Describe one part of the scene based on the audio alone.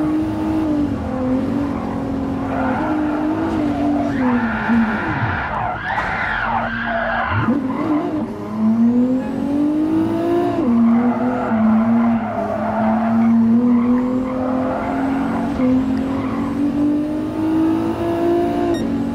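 A car engine roars loudly, rising and falling in pitch as it revs and shifts gears.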